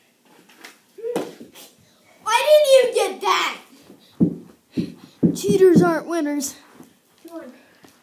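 A boy talks excitedly close by.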